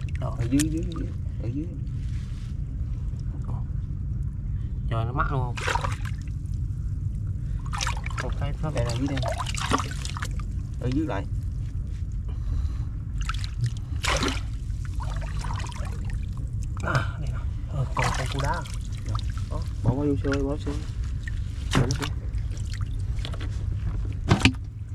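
Water splashes and sloshes in shallow water.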